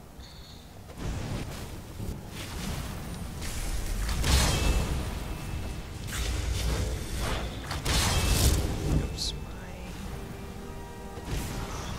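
Magic spells whoosh in loud bursts.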